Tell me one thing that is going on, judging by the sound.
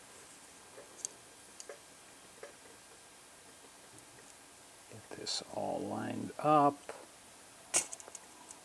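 A small circuit board clicks and taps softly as it is handled.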